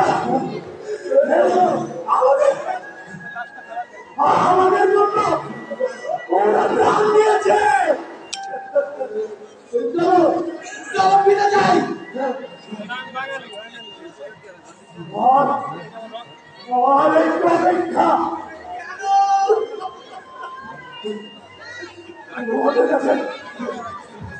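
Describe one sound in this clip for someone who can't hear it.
Actors speak loudly on an open-air stage, their voices carrying with some echo.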